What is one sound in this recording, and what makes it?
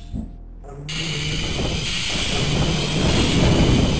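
An electric weapon crackles and zaps.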